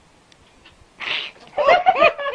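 A cat hisses sharply.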